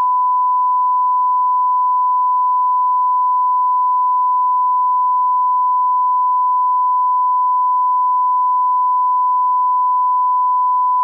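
A steady, high-pitched test tone beeps without a break.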